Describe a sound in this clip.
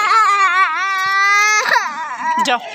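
A little girl wails loudly close by.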